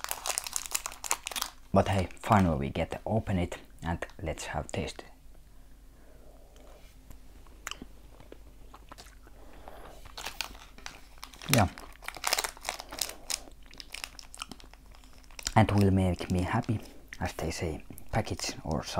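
A plastic candy wrapper crinkles and rustles as it is unwrapped.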